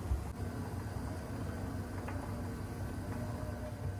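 Oil trickles into a metal pan.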